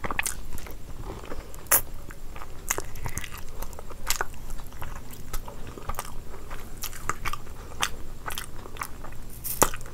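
Wet, sticky fingers squelch in food.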